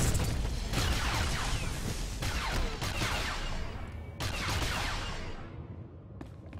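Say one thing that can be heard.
Energy blades hum and clash in a fight.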